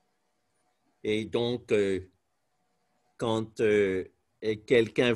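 A man speaks loudly close up, in short bursts.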